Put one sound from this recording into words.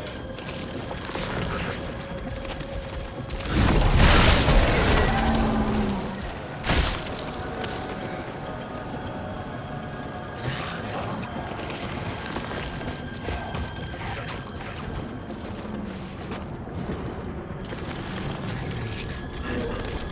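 Heavy boots crunch through snow.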